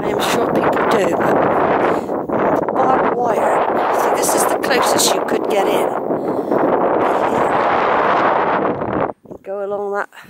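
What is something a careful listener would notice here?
Wind blows hard and rumbles across the microphone outdoors.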